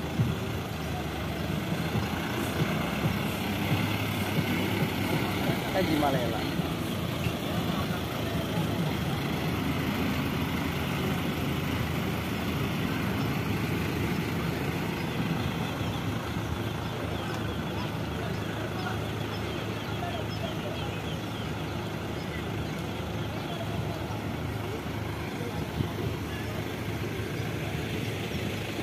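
Truck engines rumble steadily as a convoy drives past outdoors.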